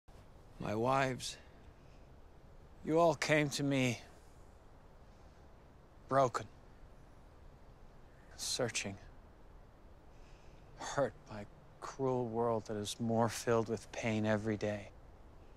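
A man speaks calmly nearby, in short phrases with pauses.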